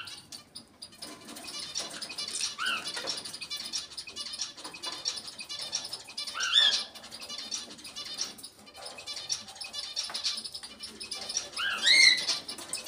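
A parrot chatters with rapid, high chirps.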